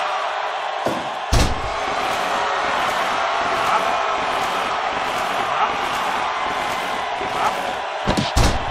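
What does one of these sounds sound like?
A large crowd cheers and roars steadily in a big echoing arena.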